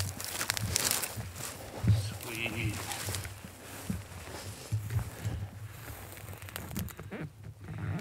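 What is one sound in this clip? A man walks quickly through dry brush, footsteps rustling.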